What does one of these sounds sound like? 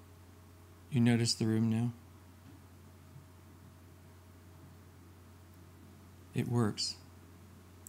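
An elderly man speaks calmly into a microphone, in short phrases.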